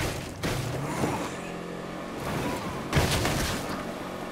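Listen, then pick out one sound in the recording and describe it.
A car crashes through a wooden fence with a loud crack.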